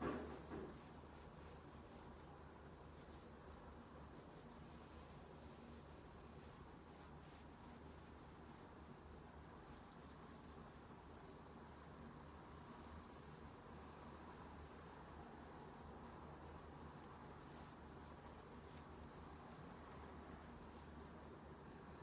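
Gloved hands rub softly over skin.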